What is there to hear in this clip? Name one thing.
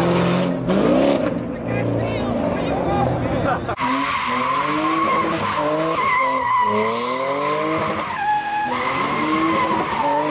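A car engine revs hard, its pitch rising and falling.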